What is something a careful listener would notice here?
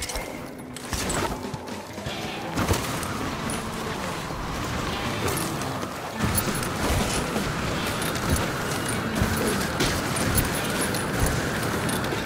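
Skis hiss and scrape over snow at speed.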